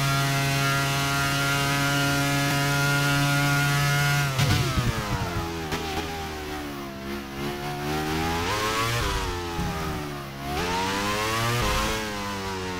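A racing car engine screams at high revs, then drops and rises in pitch as the gears shift through corners.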